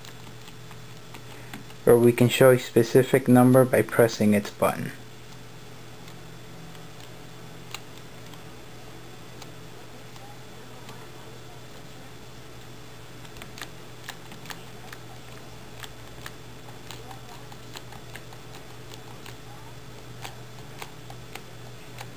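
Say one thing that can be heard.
A finger clicks the rubber buttons of a TV remote.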